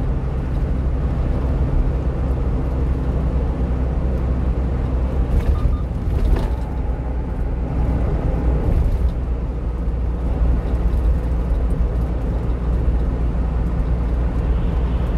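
Tyres roar on a wet road surface.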